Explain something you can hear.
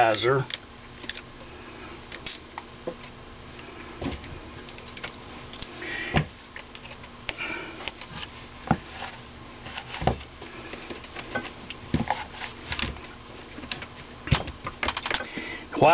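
Metal parts clink and knock as they are set in place.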